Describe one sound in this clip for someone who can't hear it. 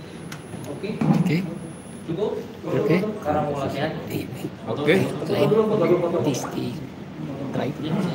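A man speaks calmly into a microphone close by.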